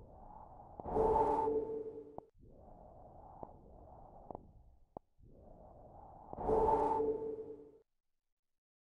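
A soft chime rings out.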